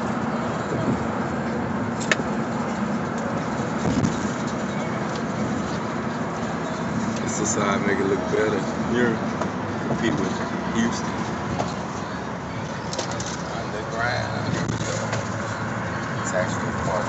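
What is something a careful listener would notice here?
Car tyres rumble steadily on the road.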